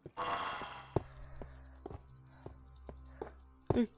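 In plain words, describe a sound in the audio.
A pickaxe taps against a stone block.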